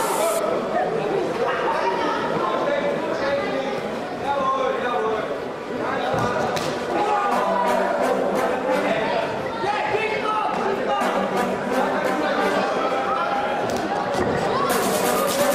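Spectators shout and call out in a large echoing hall.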